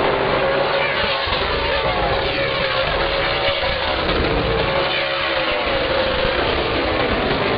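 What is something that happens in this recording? Race cars zoom past close by, their engines rising and falling in pitch.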